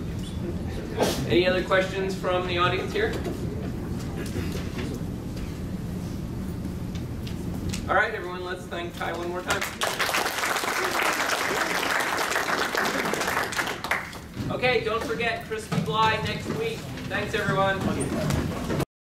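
A man speaks in short bursts in a large room, with pauses between.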